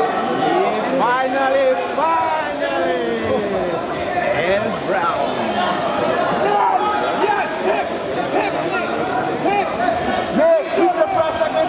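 Men nearby shout loud instructions with animation.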